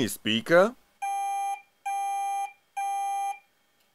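An electronic buzzer beeps three times in steady bursts.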